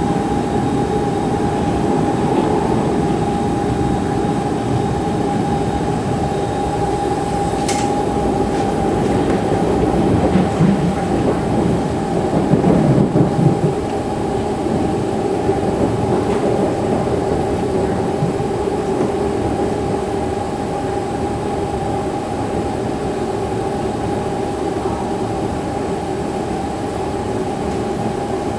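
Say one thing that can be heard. A train's motor whines with a steady high tone.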